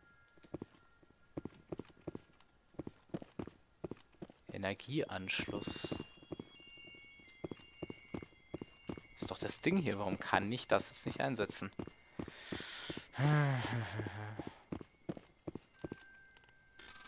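Boots step on a metal floor.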